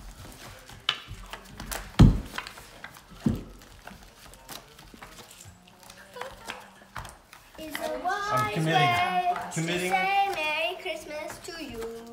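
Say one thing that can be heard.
Playing cards slap down onto a rug.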